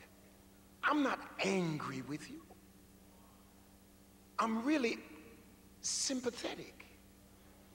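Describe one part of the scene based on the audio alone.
A man preaches forcefully into a microphone in short, loud bursts with pauses between.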